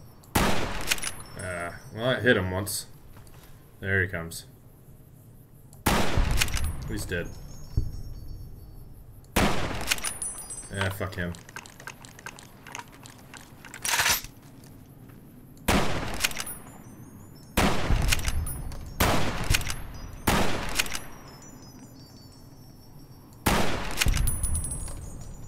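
Loud gunshots crack one after another, each followed by a short echo.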